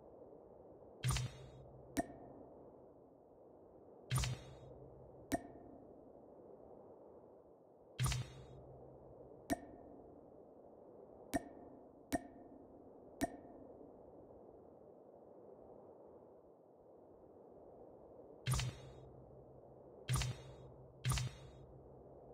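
Short menu clicks and swishes sound as options are picked in a game.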